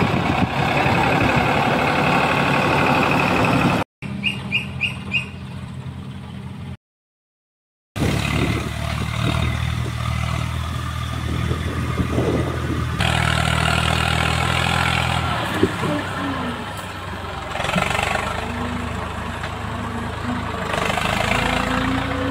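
A tractor's diesel engine chugs steadily nearby.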